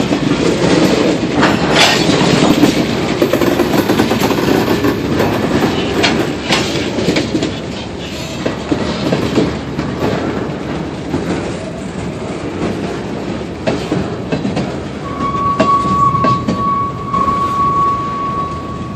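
A freight train rolls past with a heavy rumble.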